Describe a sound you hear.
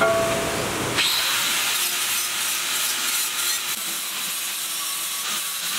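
An angle grinder whines as it cuts into metal.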